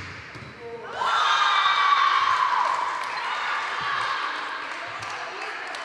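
A crowd cheers and shouts loudly after a point.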